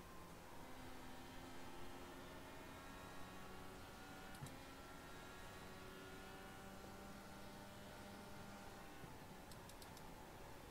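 A racing car engine drones at high speed, its pitch shifting slightly.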